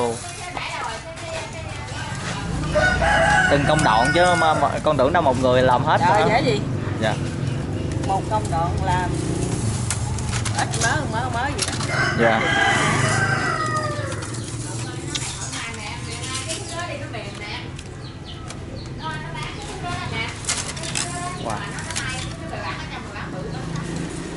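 Bamboo strips creak and rustle as a basket is woven.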